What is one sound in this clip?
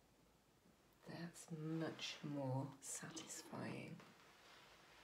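A woman speaks calmly, close by.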